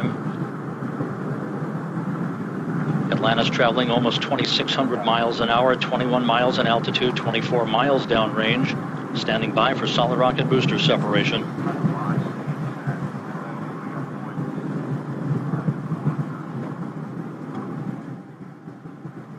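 A rocket engine roars with a steady, low rumble.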